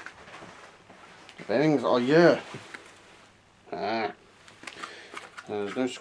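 A plastic record sleeve rustles in a hand.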